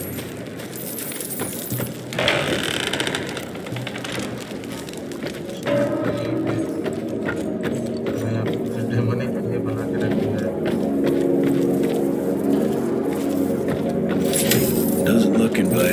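Boots thud on wooden floorboards.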